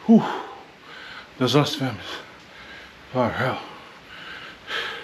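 A man talks calmly and close up, in short bursts with pauses.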